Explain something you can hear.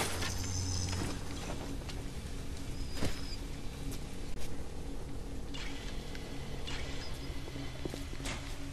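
Footsteps splash on a wet tiled floor.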